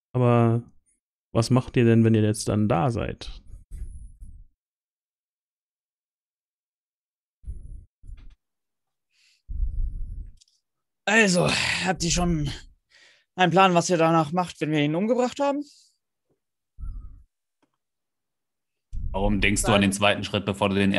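A man speaks with animation over an online call, close to the microphone.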